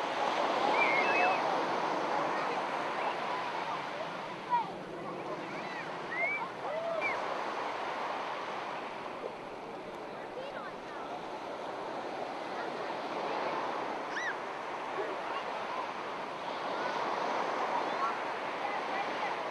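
Young children shout and squeal playfully nearby.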